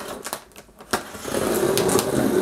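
A blade slits open packing tape on a cardboard box.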